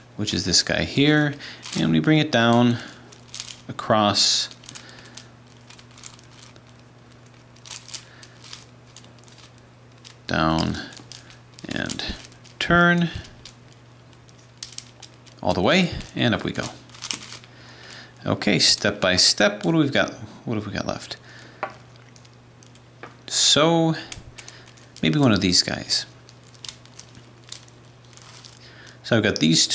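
Plastic puzzle pieces click and clack as they are twisted.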